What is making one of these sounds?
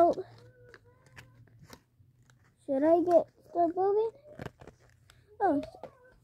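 Paper rustles and clicks in a boy's hands.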